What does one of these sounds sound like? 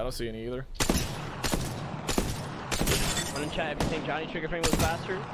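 An automatic rifle fires rapid bursts in a video game.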